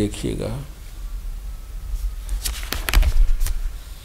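A page of a book rustles as it is turned.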